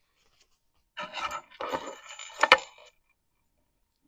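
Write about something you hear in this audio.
Small wooden sticks clatter and tap on a tray.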